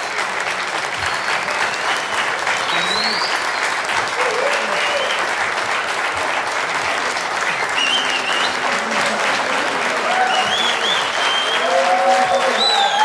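People in a crowd whistle shrilly.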